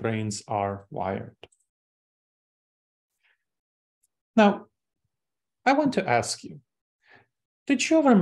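A young man speaks calmly through a microphone, with pauses.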